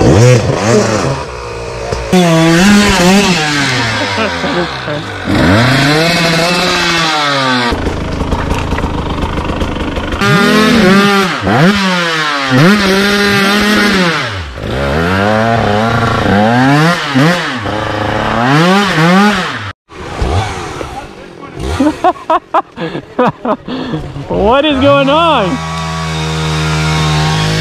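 A dirt bike engine revs hard, rising and falling in pitch over and over.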